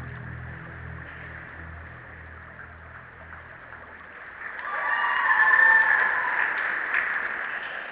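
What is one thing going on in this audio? A swimmer splashes softly through water.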